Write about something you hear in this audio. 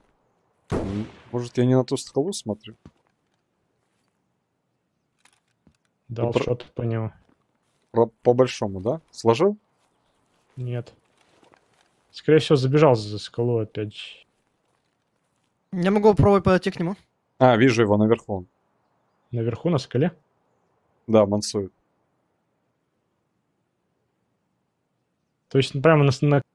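A man talks calmly into a microphone in short bursts.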